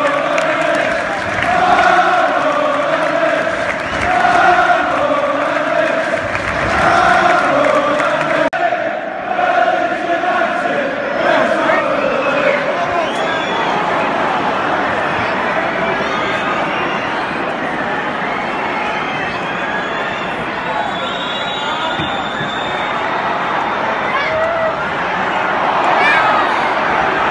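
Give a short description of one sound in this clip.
A crowd murmurs and calls out in a big open stadium.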